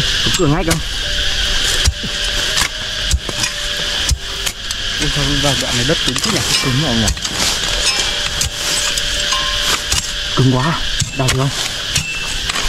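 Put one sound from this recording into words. A man talks briefly outdoors.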